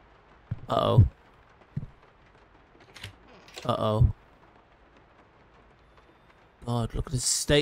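A man speaks in short bursts into a close microphone.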